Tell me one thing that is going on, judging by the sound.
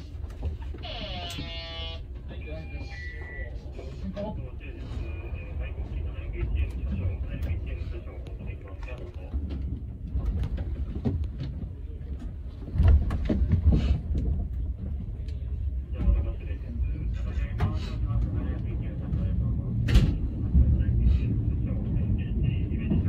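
A train rumbles along the tracks with a low, steady roar.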